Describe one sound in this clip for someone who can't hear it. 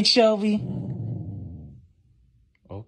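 A husky howls and whines up close.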